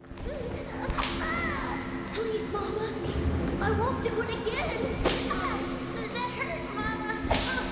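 A young boy pleads in a tearful, high voice.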